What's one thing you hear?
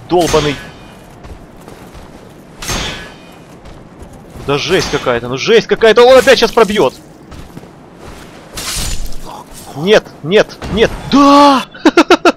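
A sword clangs against metal armour in a fight.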